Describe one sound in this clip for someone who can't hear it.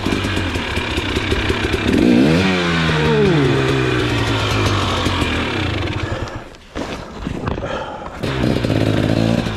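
A dirt bike engine revs loudly and sputters close by.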